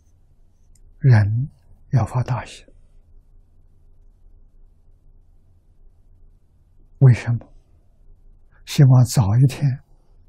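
An elderly man speaks calmly into a nearby microphone, in short phrases.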